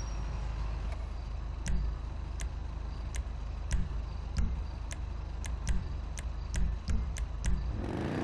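Short menu clicks tick every half second or so.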